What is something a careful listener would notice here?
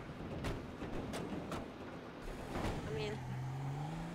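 A car engine starts and revs as the car pulls away.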